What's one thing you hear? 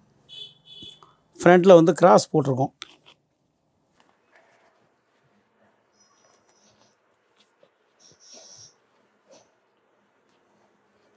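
Cloth rustles softly as it is folded and smoothed by hand.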